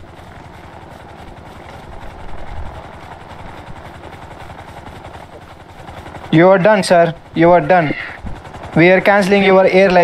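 Footsteps run quickly over grass and pavement.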